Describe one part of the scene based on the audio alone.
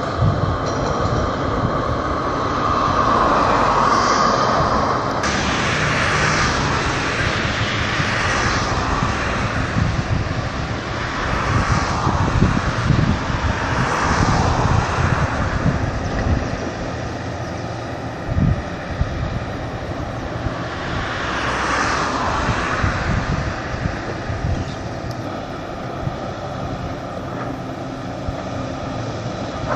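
Wind gusts outdoors and buffets the microphone.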